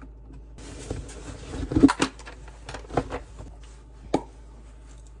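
Small objects knock and rustle as a bag is packed.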